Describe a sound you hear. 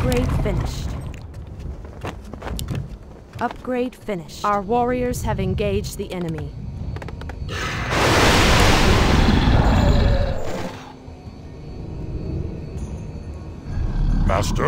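Magical blasts crackle and boom as structures are destroyed in a game.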